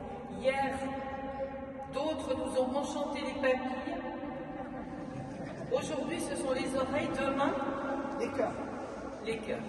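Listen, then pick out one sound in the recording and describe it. A choir of men sings together in a large echoing hall.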